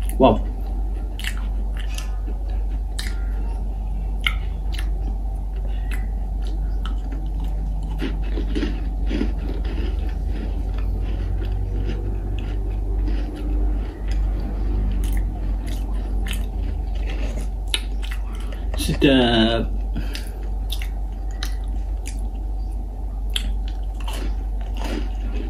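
A man crunches and chews a crisp cookie close up.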